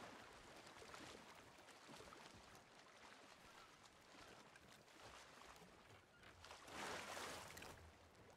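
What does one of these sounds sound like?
Waves wash and lap against wood.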